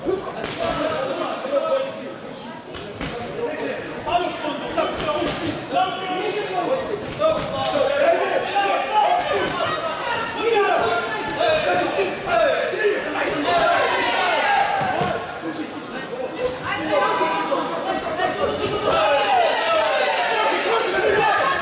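A crowd of men shouts and cheers loudly in a large echoing hall.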